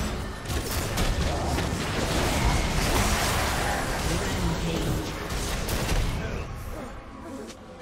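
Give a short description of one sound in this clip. Magic spells and weapon hits crash and whoosh in a busy video game fight.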